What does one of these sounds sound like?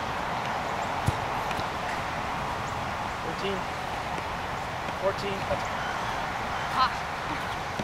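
A ball thumps against hands and the ground.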